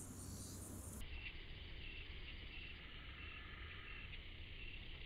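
A fishing reel clicks softly as its handle is turned.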